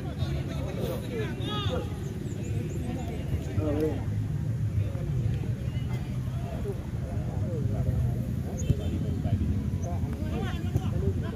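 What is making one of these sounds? A crowd of spectators chatters and calls out at a distance outdoors.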